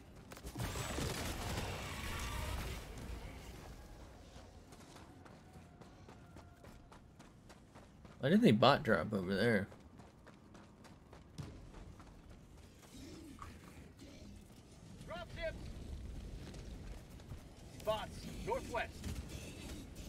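Heavy footsteps thud quickly on soft ground.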